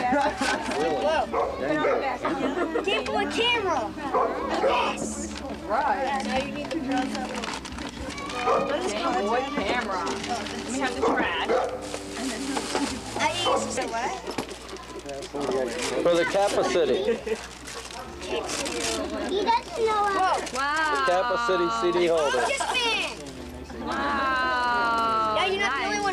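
Several children talk and chatter nearby.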